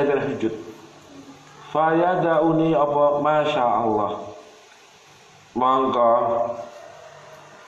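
A man chants in long melodic phrases through a microphone.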